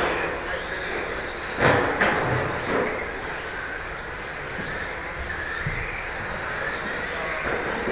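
Electric RC touring cars whine around a track in a large echoing hall.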